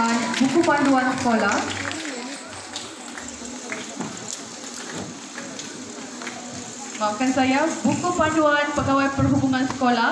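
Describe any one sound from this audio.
A woman speaks calmly through a loudspeaker in a large echoing hall.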